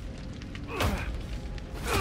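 A man bangs his fists on a wooden door.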